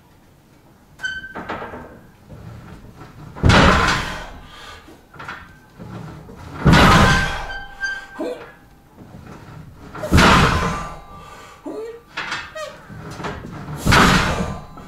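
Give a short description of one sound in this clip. A man grunts and exhales loudly with strain, close by.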